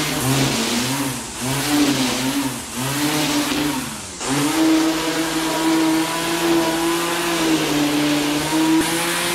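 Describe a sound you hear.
An electric string trimmer whirs, its motor pitch rising and dipping as it cuts grass.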